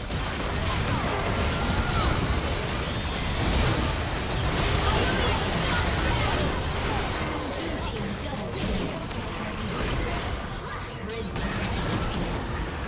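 Game spells crackle, whoosh and burst in a fast fight.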